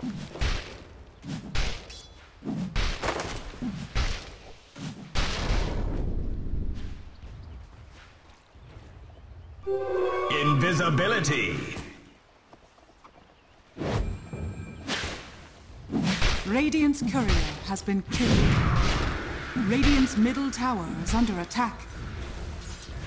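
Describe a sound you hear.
Fantasy battle sound effects clash, whoosh and crackle in quick bursts.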